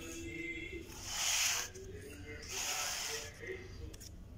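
A spoon scrapes and scoops food from a container.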